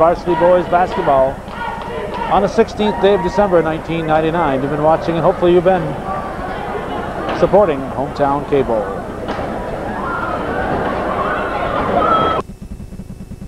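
Men and women chatter loudly nearby in a large echoing hall.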